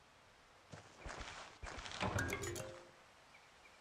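A bright chime rings as an item is picked up.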